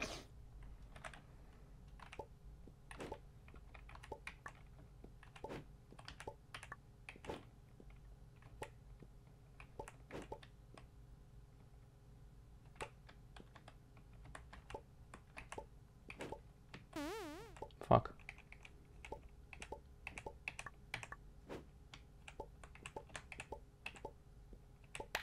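Short game sound effects tick repeatedly as a small figure jumps.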